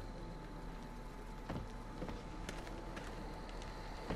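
A wooden door swings shut with a knock.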